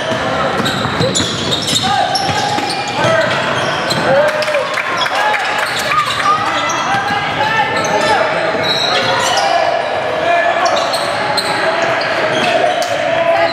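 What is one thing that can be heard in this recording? A basketball bounces on a wooden floor, echoing in a large hall.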